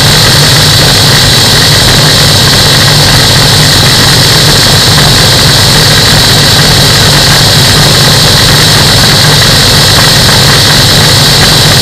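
A small aircraft engine drones steadily and loudly close by.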